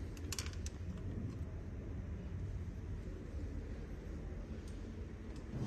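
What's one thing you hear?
Metal parts click and rattle as a hand works a latch.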